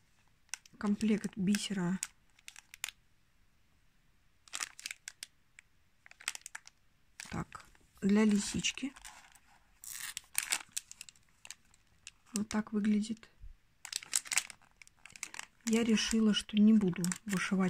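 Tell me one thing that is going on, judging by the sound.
A plastic packet crinkles in a hand.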